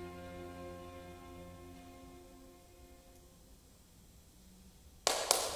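A string quartet plays a slow, sustained chord that fades away.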